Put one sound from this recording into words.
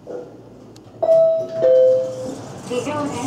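An elevator chime sounds two tones.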